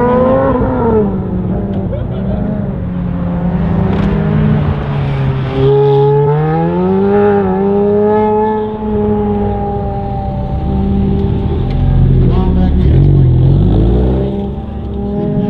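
A car engine revs hard and roars as the car speeds through turns.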